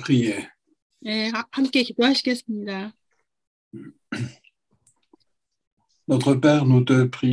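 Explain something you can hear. A middle-aged woman speaks over an online call.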